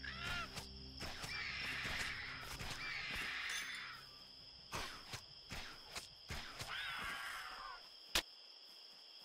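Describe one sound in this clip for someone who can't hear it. Weapons strike with sharp hits.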